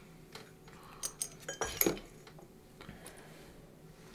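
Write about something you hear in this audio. A glass clinks against a bottle.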